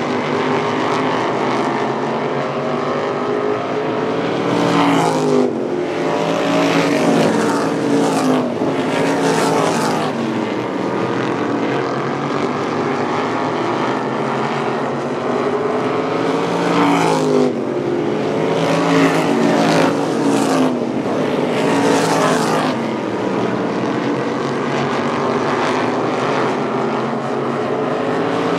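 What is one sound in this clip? Racing car engines roar loudly as they speed past on a track.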